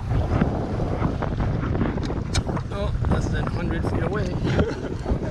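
A conventional fishing reel whirs and clicks as its handle is cranked.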